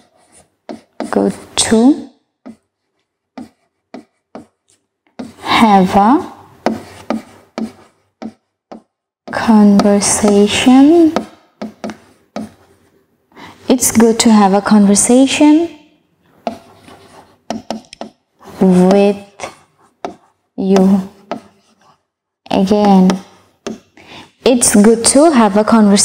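A woman speaks clearly and slowly into a close microphone, reading out phrases.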